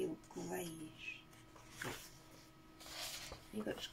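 Stiff paper rustles and flaps as it is lifted and turned.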